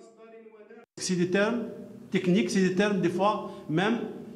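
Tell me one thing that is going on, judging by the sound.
An older man speaks with animation into microphones, heard close and loud.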